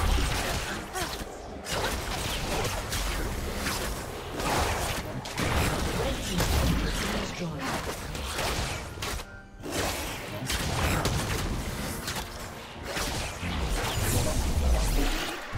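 Blows and blasts thud repeatedly in a video game fight.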